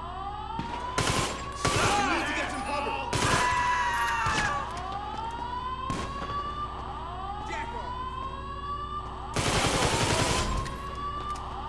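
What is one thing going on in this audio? A pistol fires in bursts of rapid shots.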